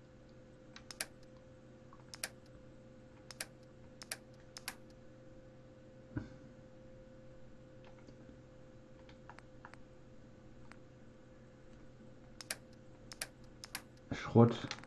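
Short soft clicks tick now and then, like a menu being scrolled.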